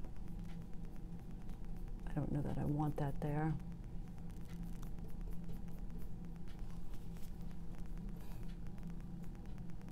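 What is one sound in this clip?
A brush softly strokes across canvas.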